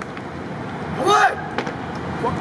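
Young men shout loudly in unison outdoors.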